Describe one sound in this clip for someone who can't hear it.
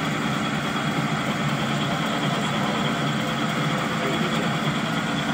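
A machine hums and rattles steadily up close.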